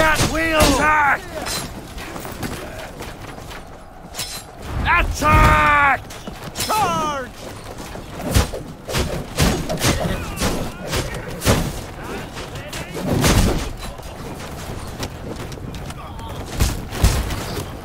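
Swords clash and strike armour in a fight.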